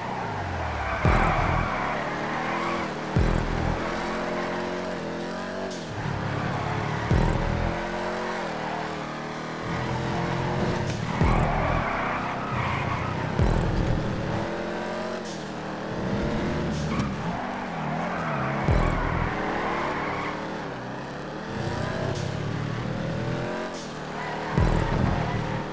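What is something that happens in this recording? Tyres screech through the bends.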